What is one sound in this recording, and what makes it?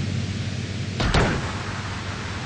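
A car lands with a heavy crash.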